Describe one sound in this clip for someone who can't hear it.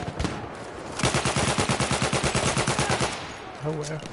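A machine gun fires a rapid burst close by.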